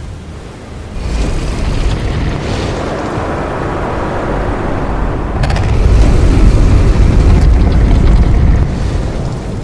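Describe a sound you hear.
A magical energy swirls with a deep, rushing roar that swells and then fades.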